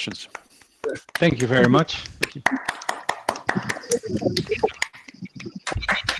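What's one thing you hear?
Several people clap their hands over an online call.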